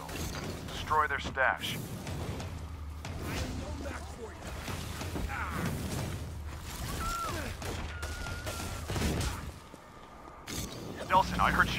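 Energy blasts whoosh and crackle in quick bursts.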